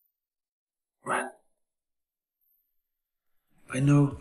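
A young man murmurs weakly.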